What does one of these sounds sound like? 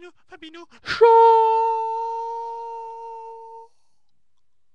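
A young man sings one loud, long note that slowly fades.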